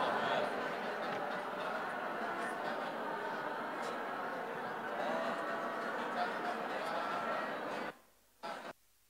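A large crowd prays aloud together in a murmuring chorus in a large echoing hall.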